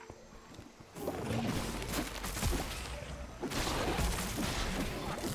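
Magic blasts and hits crackle and thump in quick succession.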